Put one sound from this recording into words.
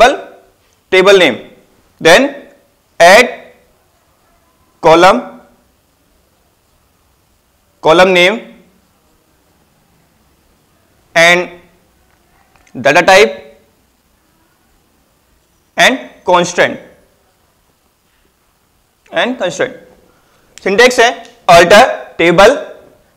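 A man speaks calmly in short phrases with pauses, close by.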